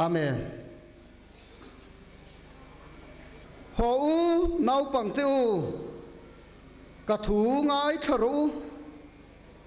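A man speaks forcefully into a microphone in short bursts, echoing through a large hall.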